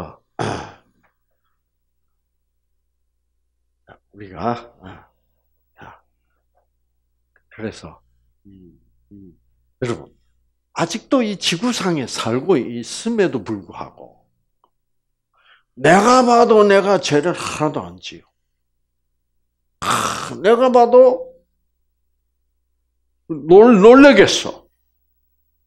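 An elderly man speaks with animation through a headset microphone, in short bursts with pauses.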